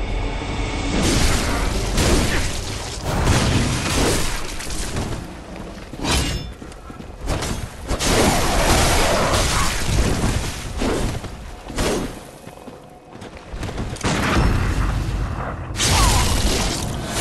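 A sword slashes and clangs in a fight.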